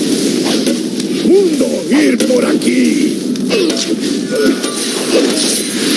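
Magic spells whoosh and burst in a game battle.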